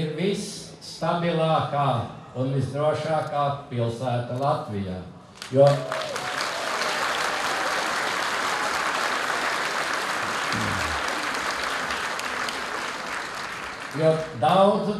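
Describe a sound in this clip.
An elderly man speaks calmly into a microphone outdoors.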